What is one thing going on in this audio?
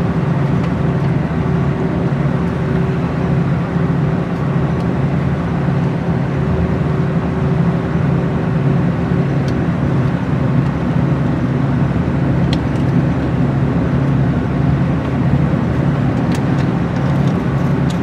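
A vehicle engine hums steadily from inside a moving bus.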